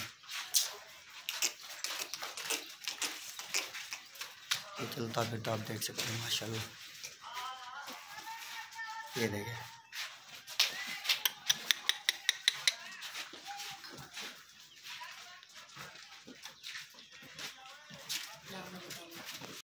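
Goat hooves shuffle on a dirt floor.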